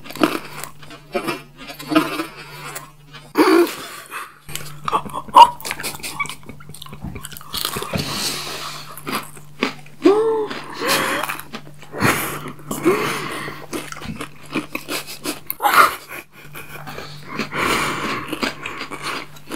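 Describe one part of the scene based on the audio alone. A young man chews food with crunching and smacking sounds close to a microphone.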